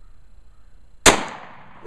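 A single gunshot cracks loudly outdoors and echoes away.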